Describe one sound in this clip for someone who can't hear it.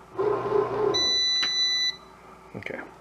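An appliance gives a long electronic beep.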